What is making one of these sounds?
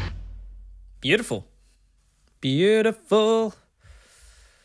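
A young man speaks briefly and expressively, close to a microphone.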